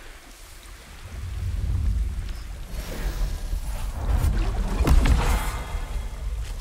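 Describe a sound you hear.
Glass shatters and crashes loudly.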